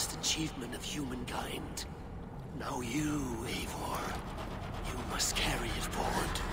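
A man speaks in a deep, slow voice.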